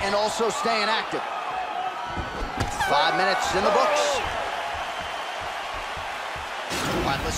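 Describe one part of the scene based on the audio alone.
A crowd murmurs and cheers in a large arena.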